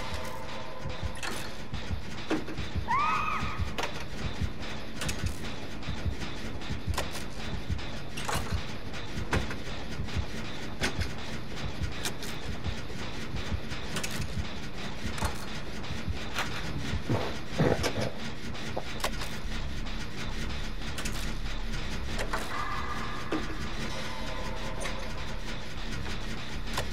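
Metal parts clank and rattle steadily as a machine is worked on.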